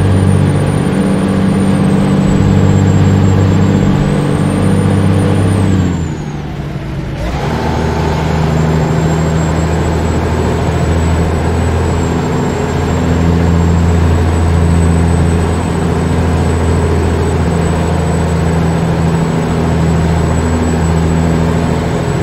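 A heavy truck engine drones steadily, dropping away briefly as the gears change and then pulling again.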